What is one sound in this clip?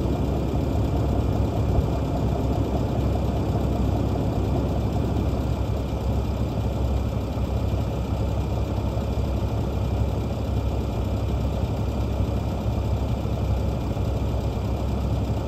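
A large diesel engine idles steadily nearby.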